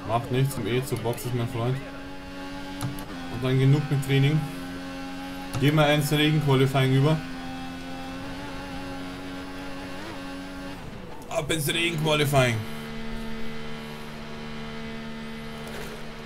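A Formula One car engine screams at high revs through upshifts.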